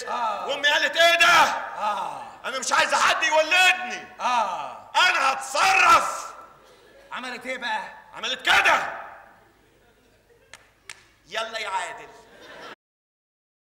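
A man shouts loudly with animation.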